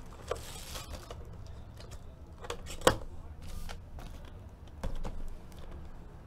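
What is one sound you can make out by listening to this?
Cardboard boxes knock and slide against each other.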